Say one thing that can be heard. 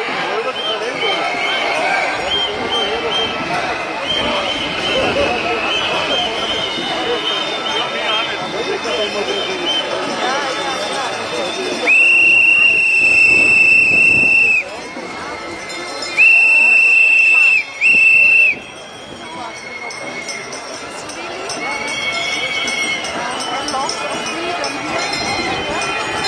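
A large crowd of men and women chatters and calls out outdoors.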